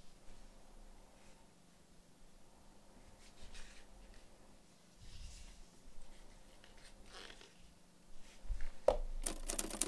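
Hands slide small tools in and out of a leather pouch.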